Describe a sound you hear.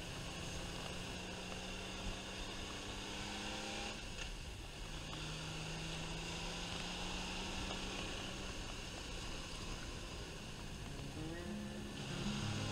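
A motorcycle engine hums steadily and changes pitch as the rider shifts gears.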